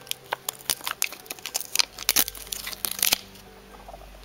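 Paper stickers rustle and crinkle as they are handled.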